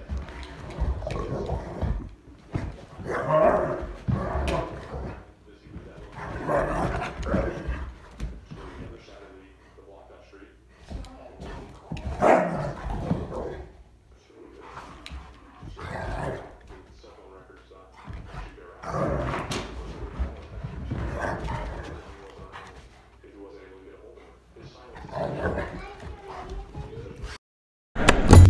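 Two large dogs growl and snarl as they play-fight.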